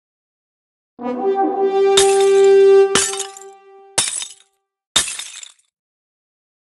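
A cheerful fanfare with a sparkling burst plays.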